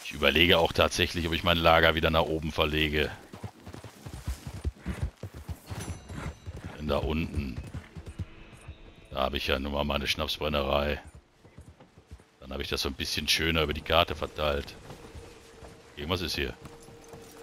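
A horse trots with hooves thudding on soft ground.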